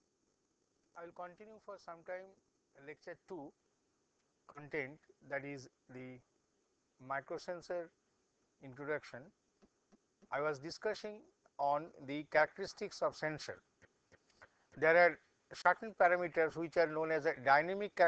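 A middle-aged man lectures calmly into a microphone.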